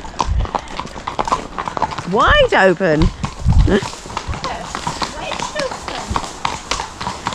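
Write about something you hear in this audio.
Horse hooves clop steadily on a paved road.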